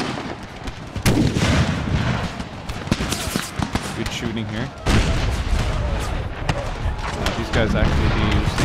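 Muskets fire close by with sharp bangs.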